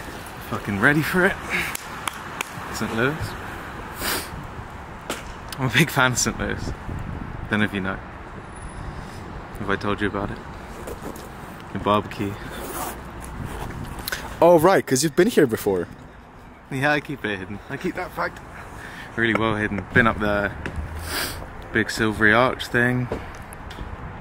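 A young man talks calmly and close by, in short bursts.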